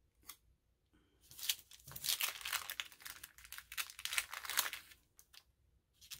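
A sticker peels off its backing with a soft crackle.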